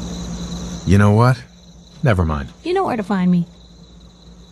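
A man speaks briefly and calmly.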